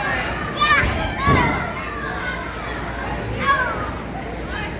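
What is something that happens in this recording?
Young children shout and squeal excitedly nearby.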